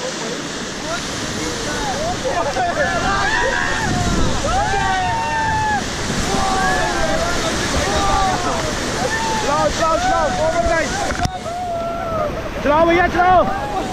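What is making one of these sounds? Rushing river rapids roar loudly all around.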